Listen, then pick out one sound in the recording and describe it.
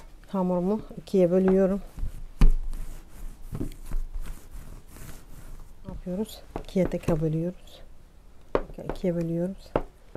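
A knife cuts through soft dough and taps against a hard counter.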